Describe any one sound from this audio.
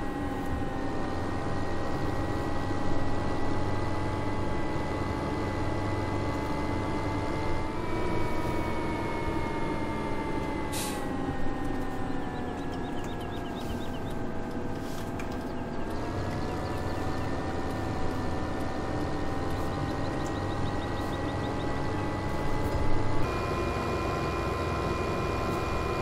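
A tractor engine drones steadily, its pitch rising and falling with speed.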